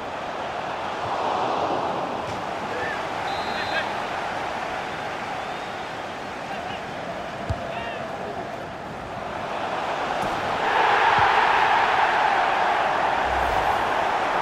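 A large stadium crowd roars steadily and swells louder toward the end.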